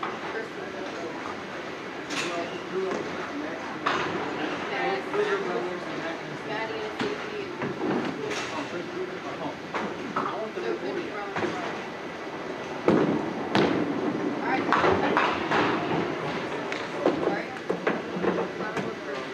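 Bowling balls rumble down wooden lanes and crash into pins in a large echoing hall.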